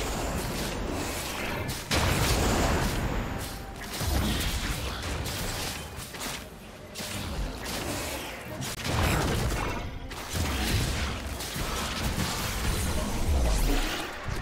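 Game spell effects whoosh and crackle in bursts during a fight.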